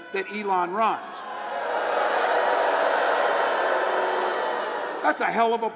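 A man speaks loudly into a microphone through loudspeakers.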